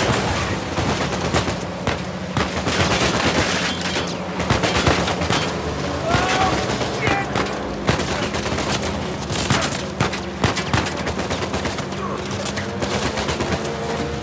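Gunshots crack sharply, again and again.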